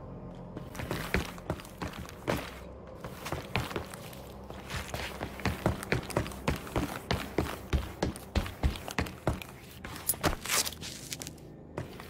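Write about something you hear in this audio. Footsteps thud steadily on a hard floor.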